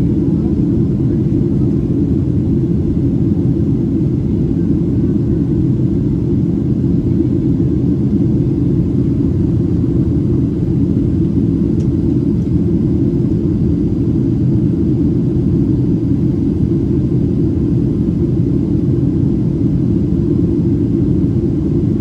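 Jet engines roar steadily with a low, constant drone inside an airplane cabin.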